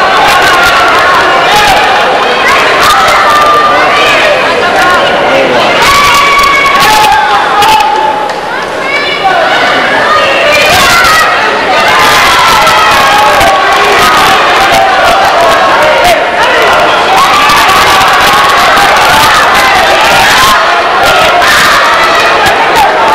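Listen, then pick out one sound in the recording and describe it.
A large crowd of spectators shouts and cheers in a big echoing hall.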